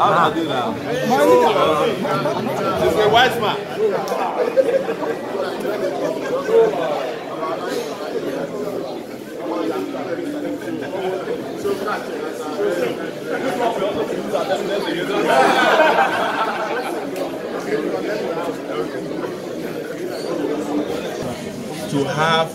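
A large crowd chants and shouts excitedly nearby in an echoing hall.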